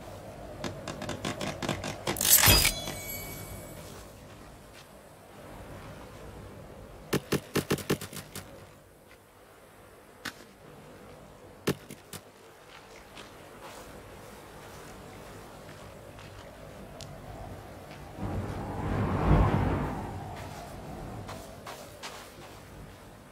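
Footsteps crunch on sand and grass.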